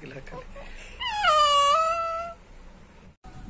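A baby lets out a high squeal.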